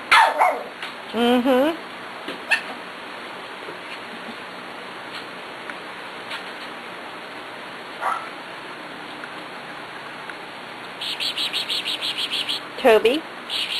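A puppy whines with rising and falling yelps.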